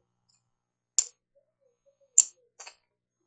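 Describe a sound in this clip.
Plastic game tokens click against each other.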